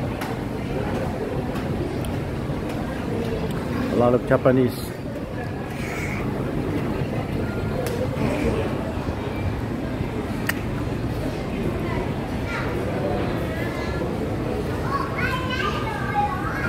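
Many people talk in a low murmur in a large echoing indoor space.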